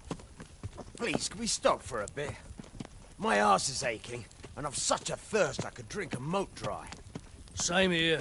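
A man speaks in a weary, complaining voice.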